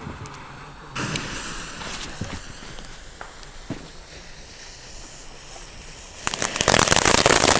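A lit fuse hisses and sputters.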